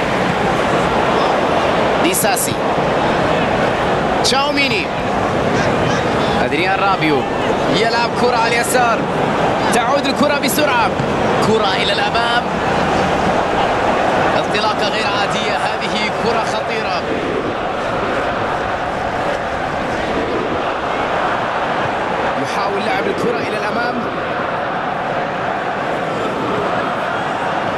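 A large crowd roars and chants steadily throughout.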